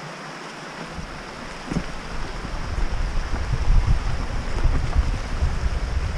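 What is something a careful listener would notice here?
A stream babbles nearby.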